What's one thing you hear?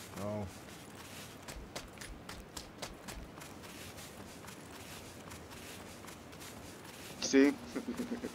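A figure crawls over sand with soft, rhythmic shuffling.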